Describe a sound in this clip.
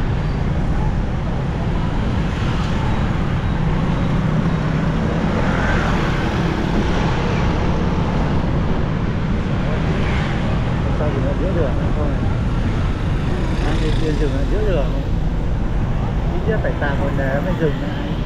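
Passing motorbikes buzz by in traffic.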